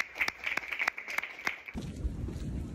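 Hands clap quickly several times.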